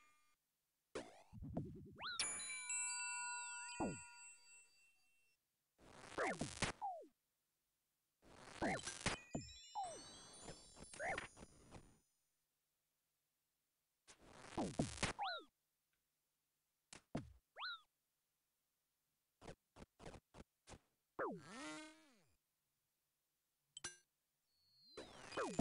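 Video game combat effects zap, clash and chime in short bursts.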